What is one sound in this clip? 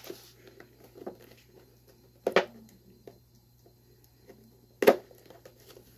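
Sharp clicks and snaps come as plastic is cut open.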